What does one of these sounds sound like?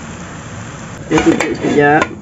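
A glass lid clinks down onto a pan.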